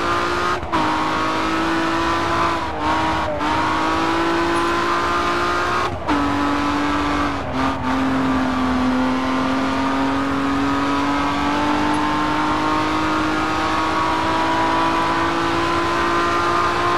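A racing car engine roars loudly and climbs steadily in pitch.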